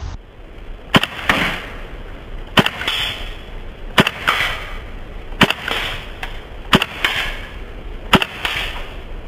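An airsoft gun fires single shots.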